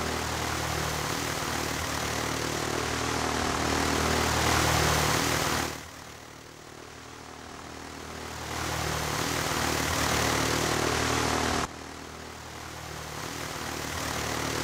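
An early propeller engine drones steadily.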